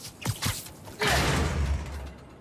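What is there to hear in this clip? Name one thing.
Glass shatters with a loud crash.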